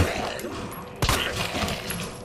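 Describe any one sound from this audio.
A handgun fires sharply.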